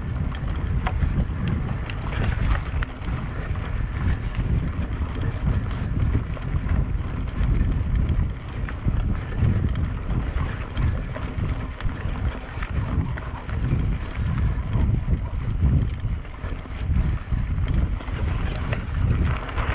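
Mountain bike tyres roll over a dirt trail.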